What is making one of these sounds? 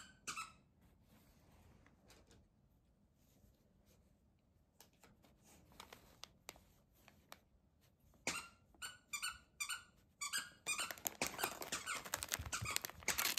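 Kittens paw and bite at a package, crinkling its wrapping paper.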